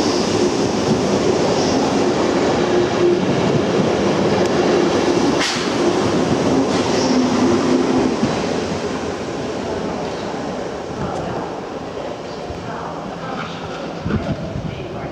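A train rumbles and hums as it pulls away along the tracks, slowly fading.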